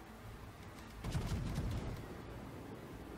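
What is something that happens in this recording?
Heavy guns fire with a loud, deep boom.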